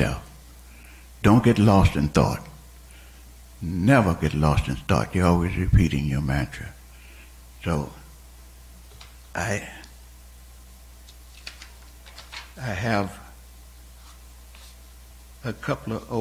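An elderly man speaks slowly through a microphone, with pauses.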